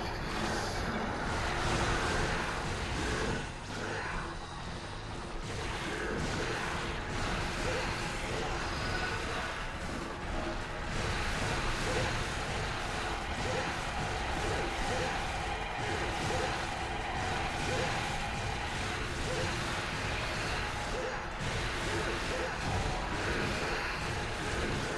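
A sword slashes and strikes repeatedly in a game fight.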